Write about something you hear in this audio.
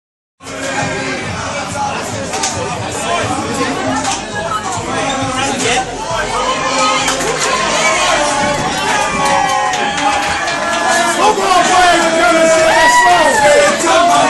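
A crowd of young people chatters loudly in an echoing hallway.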